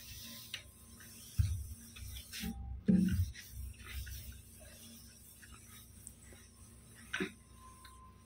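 A cloth wipes across a smooth surface.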